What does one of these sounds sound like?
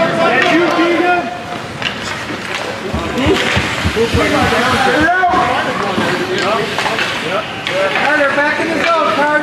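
Young children shout and call out excitedly.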